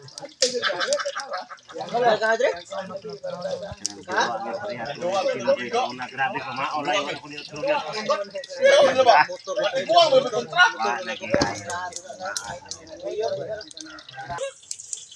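Several men talk casually close by, outdoors.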